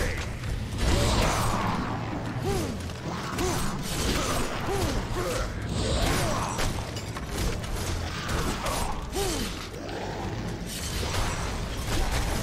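Magic blasts crackle and burst.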